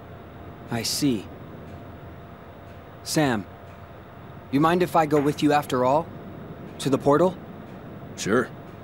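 A young man speaks into a close microphone in short, animated bursts.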